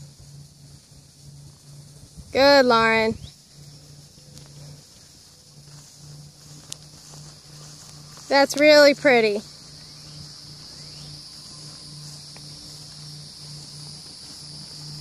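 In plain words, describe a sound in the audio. A horse canters over grass with soft, distant hoofbeats.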